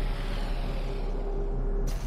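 A teleporter whooshes and crackles with energy.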